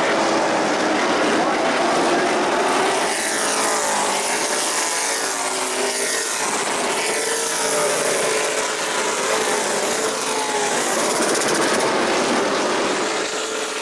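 Race car engines roar loudly as cars speed past and fade.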